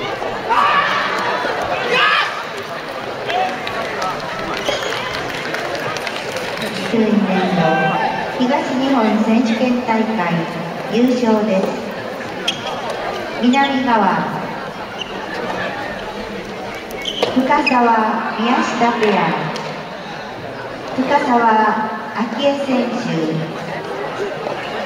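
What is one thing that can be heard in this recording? Tennis balls are struck with rackets, echoing in a large hall.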